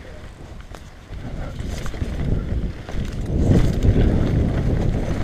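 Bicycle tyres rumble and rattle over a bumpy dirt trail.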